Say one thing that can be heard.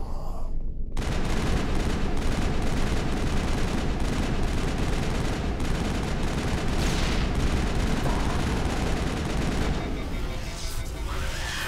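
Rapid gunfire blasts loudly and steadily.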